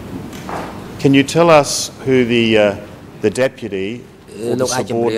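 An older man speaks formally into a microphone.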